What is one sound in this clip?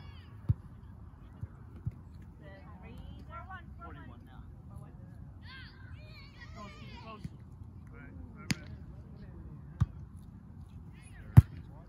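Hands thump a volleyball back and forth outdoors.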